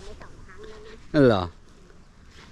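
A young child calls out close by.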